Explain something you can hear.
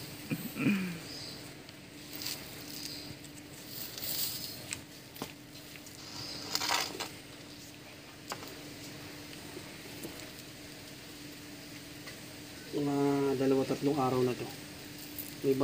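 Dry leaves rustle and crackle as hands dig through them.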